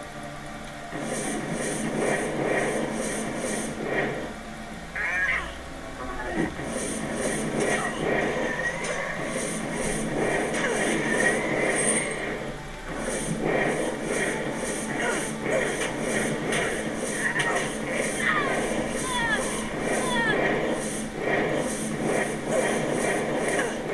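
Fire spells whoosh and crackle in repeated bursts.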